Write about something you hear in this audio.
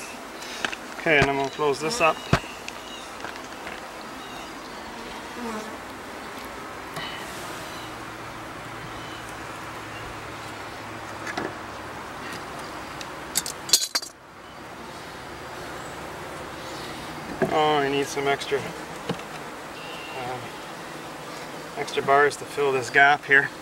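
Bees buzz and hum steadily close by.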